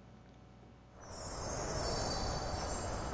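Strong wind blows loudly outdoors.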